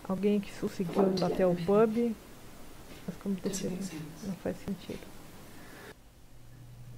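A woman speaks calmly, heard through an old recording.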